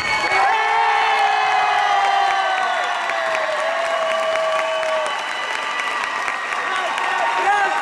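Music plays loudly over loudspeakers in a large hall.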